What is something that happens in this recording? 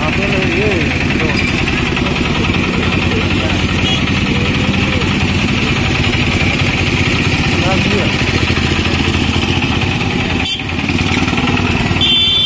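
A motor engine idles close by with a steady, low rumble.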